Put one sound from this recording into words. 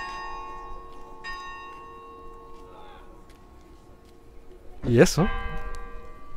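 An electric guitar plays ringing chords.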